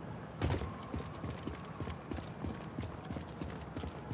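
Footsteps run on a hard floor.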